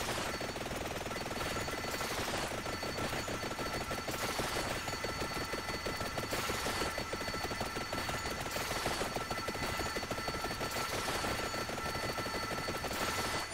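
Rapid game hit sounds crackle without a break.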